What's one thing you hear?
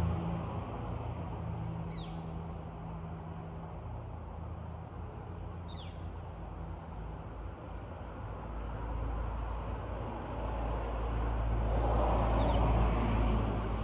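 Wind rustles through the trees outdoors, growing stronger toward the end.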